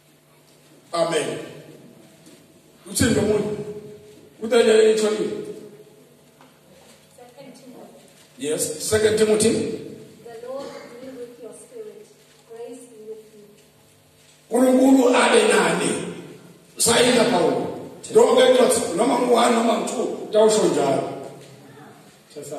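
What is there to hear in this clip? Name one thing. A man preaches loudly into a microphone over loudspeakers, his voice echoing in a large hall.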